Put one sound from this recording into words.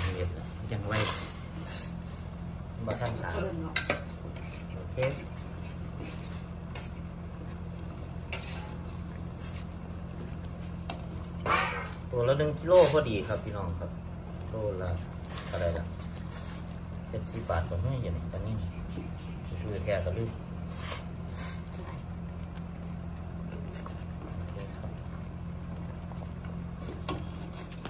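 A metal spatula scrapes and clinks against a steel pot.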